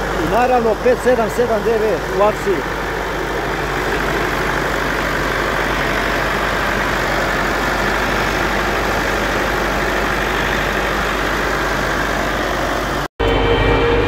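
A tractor engine idles with a steady rumble close by.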